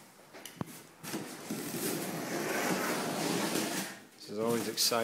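A blade slices through packing tape on a cardboard box with a rough scraping sound.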